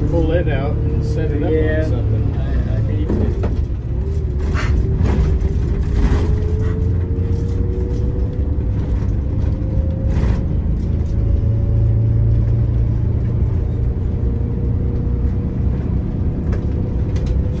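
A large vehicle's engine drones steadily from inside the cab.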